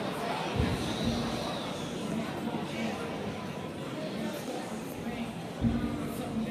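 A stringed instrument plays slow, held notes in a large echoing hall.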